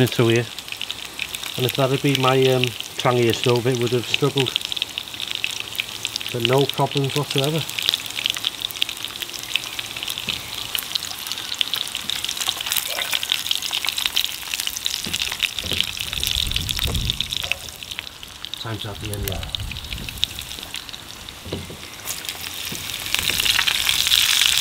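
Sausages sizzle in oil in a frying pan.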